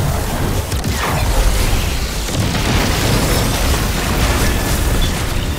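Video game weapons fire in rapid bursts with loud blasts and crackling energy effects.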